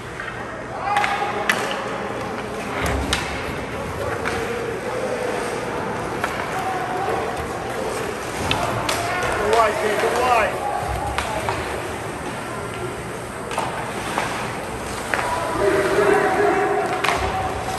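Hockey sticks click sharply against the puck.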